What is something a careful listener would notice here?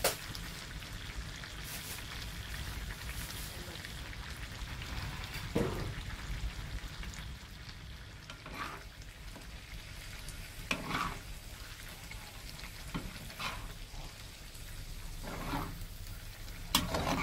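Food simmers and bubbles in a pan.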